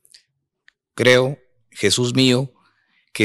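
A man reads aloud into a microphone.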